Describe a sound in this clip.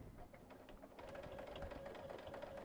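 A sewing machine hums and stitches steadily.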